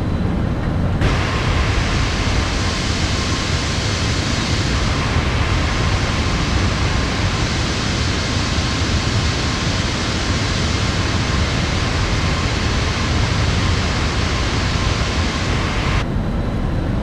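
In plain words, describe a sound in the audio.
A jet airliner's engines roar loudly as it flies past.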